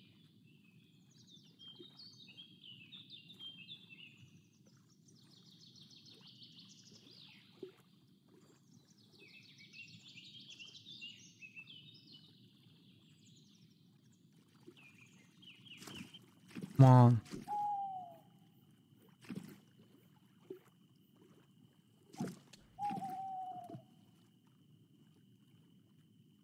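Water laps gently and steadily.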